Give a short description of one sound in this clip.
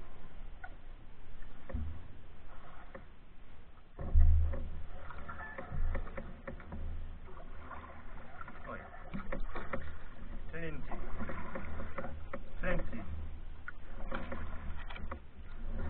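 A canoe hull scrapes and bumps against a rocky shore.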